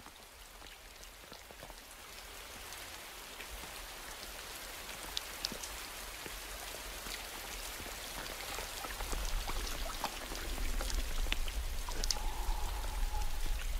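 A tortoise's foot squelches in wet mud.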